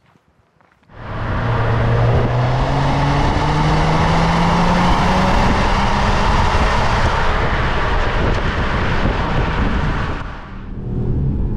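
A car engine starts and revs loudly from the exhaust, its roar rising.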